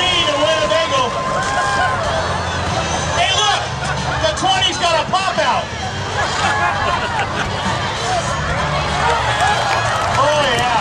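A crowd of spectators cheers and shouts nearby.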